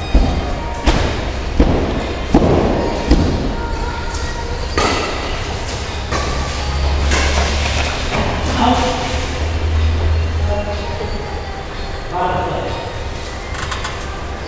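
Shuttlecocks are struck sharply with rackets.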